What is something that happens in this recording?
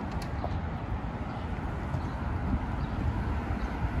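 High heels click on pavement nearby.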